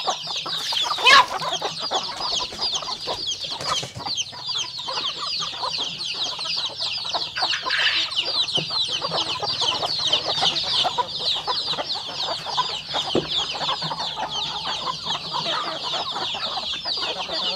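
Chicks chirp constantly and shrilly.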